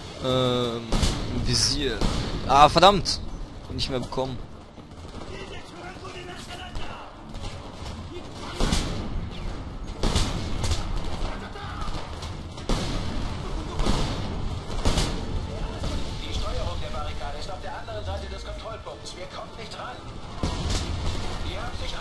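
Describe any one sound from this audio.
Rifle shots ring out loudly, one at a time.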